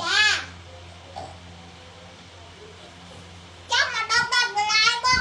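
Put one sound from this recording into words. A young child speaks loudly and excitedly, close by.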